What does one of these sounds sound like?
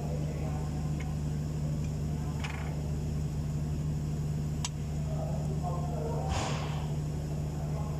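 A rubber belt slaps and rubs against metal pulleys.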